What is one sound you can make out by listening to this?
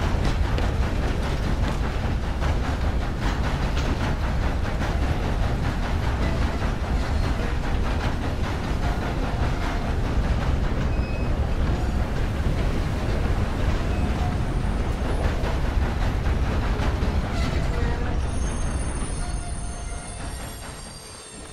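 A steam locomotive puffs steadily.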